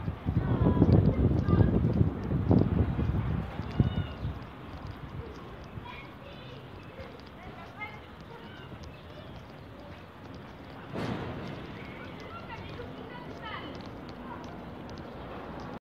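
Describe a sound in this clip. Flip-flops slap on pavement with each step.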